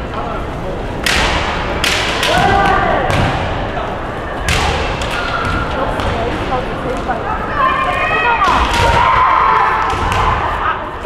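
Bamboo swords clack sharply against each other in a large echoing hall.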